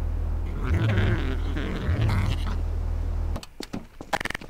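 A car engine hums steadily and then cuts off.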